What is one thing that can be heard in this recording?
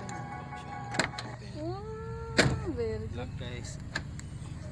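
A car door lock clicks sharply several times.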